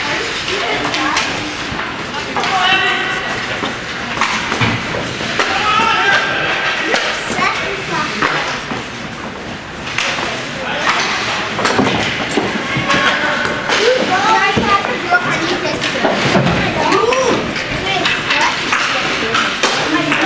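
Children shout and cheer in a large echoing rink.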